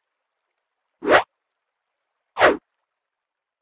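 Sharp clicks sound as a menu opens and closes.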